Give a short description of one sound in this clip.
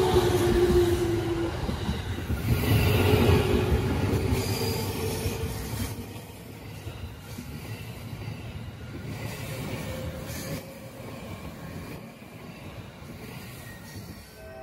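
A train rumbles and clatters along the rails close by, then fades into the distance.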